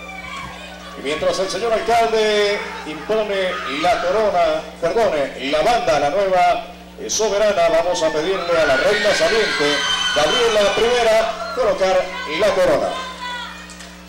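A woman speaks into a microphone, heard over loudspeakers.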